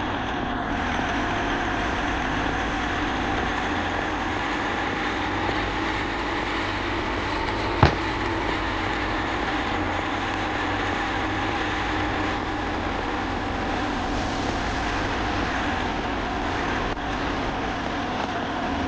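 A truck engine drones steadily as it drives along.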